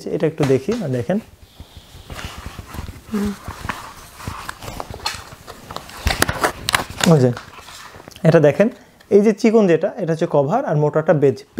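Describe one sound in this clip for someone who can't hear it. A plastic strip rustles and clicks as hands handle it.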